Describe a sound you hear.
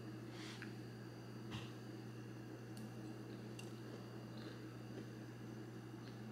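A young woman chews food softly close to a microphone.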